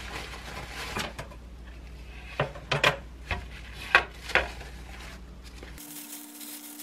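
Paper towels rustle and crumple as they are pressed and torn.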